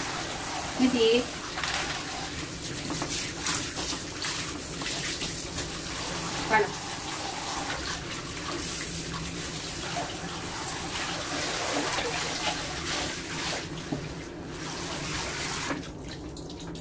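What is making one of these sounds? Water sprays steadily from a shower head.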